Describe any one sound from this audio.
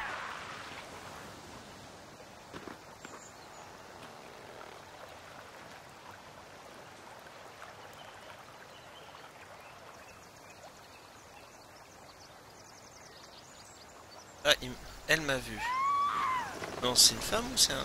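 A soft breeze blows through trees outdoors.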